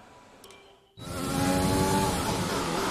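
A racing car engine revs loudly.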